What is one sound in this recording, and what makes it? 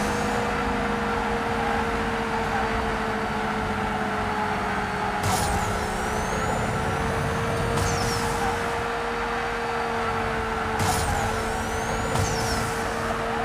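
A racing car engine roars at high revs throughout.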